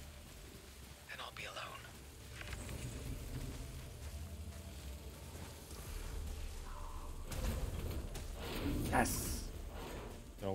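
Heavy footsteps crunch on rough ground.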